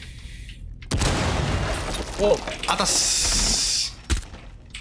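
A rifle fires in loud, sharp cracks.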